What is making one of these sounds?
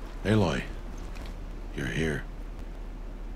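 A man speaks calmly and warmly, close by.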